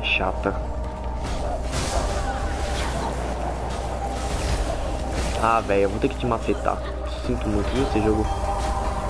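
Magical blasts and sword strikes ring out in a fight.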